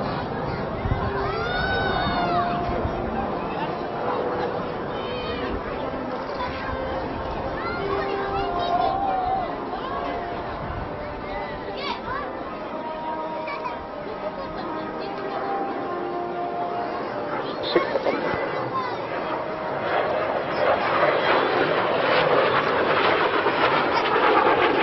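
A jet engine roars in the distance and swells to a loud, rushing roar as the plane passes close.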